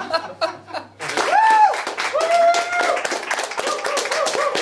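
A small group of people claps their hands.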